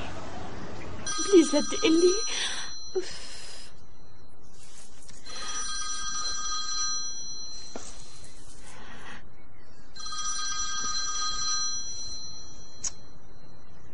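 A phone rings with a repeating chiming melody.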